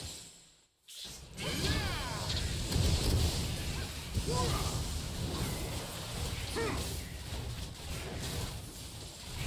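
Game combat sounds of blows and spells clash rapidly.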